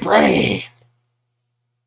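A man exclaims loudly close to a microphone.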